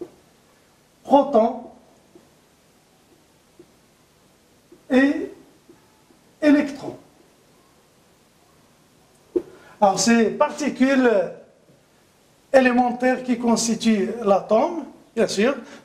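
A middle-aged man speaks calmly, in pauses.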